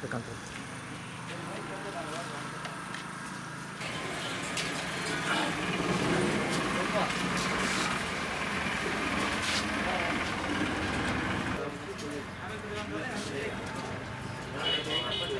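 Several men talk quietly nearby outdoors.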